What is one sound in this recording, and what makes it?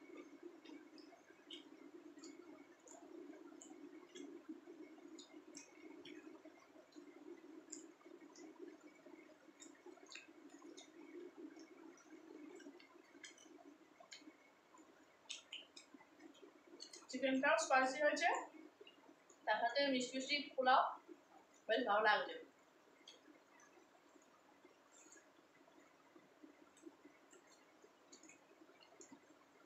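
Fingers squish and mix food on a plate.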